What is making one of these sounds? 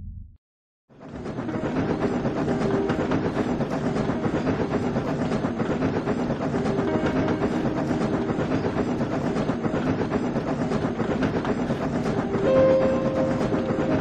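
A steam engine chuffs steadily along a track.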